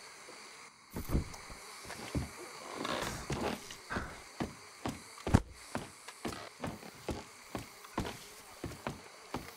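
Footsteps thud steadily on wooden planks.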